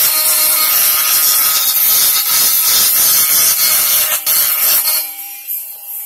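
A small rotary tool whirs loudly at high speed.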